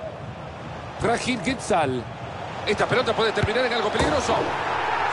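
A stadium crowd roars loudly as play nears the goal.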